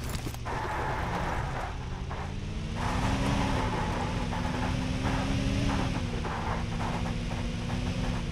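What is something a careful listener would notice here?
A truck engine rumbles and revs as it drives.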